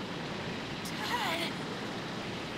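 A boy cries out in a strained voice.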